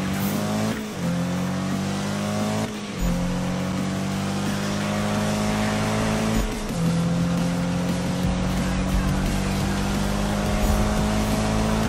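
A car engine roars at high revs, dipping briefly at each gear change.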